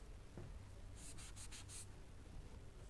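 A cloth rubs against a blackboard.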